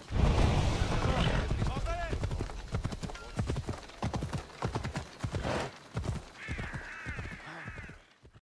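A horse's hooves clop steadily at a trot.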